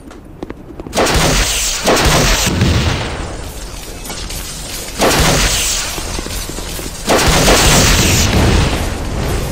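Rocket blasts explode with a loud roar.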